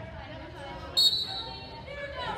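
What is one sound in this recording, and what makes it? A referee's whistle blows one short, shrill blast.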